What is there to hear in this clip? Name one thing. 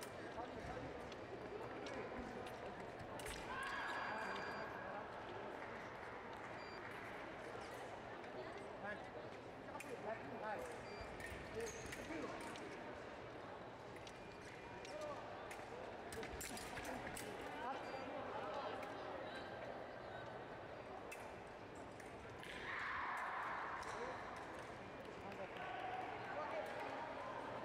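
Footsteps squeak and thud on the fencing strip.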